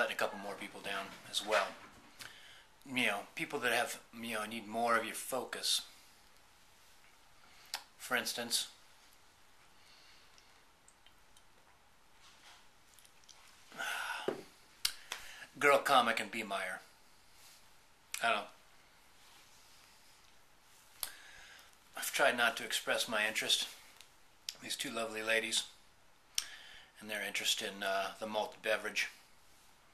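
A man speaks calmly and close up, in short bursts with pauses.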